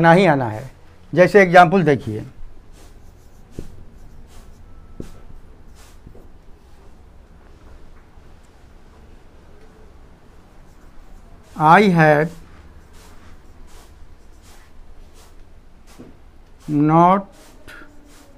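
An elderly man speaks calmly in short phrases, close to a microphone.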